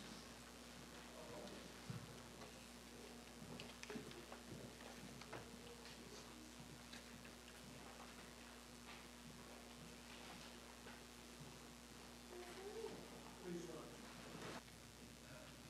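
An elderly man speaks quietly and far off in a large echoing hall.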